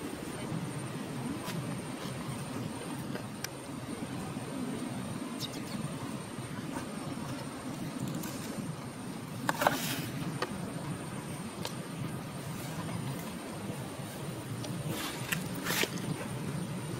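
A young monkey chews and nibbles on food close by.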